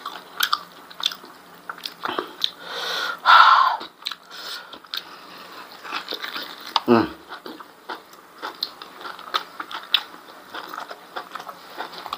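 Fingers tear at food on a plate.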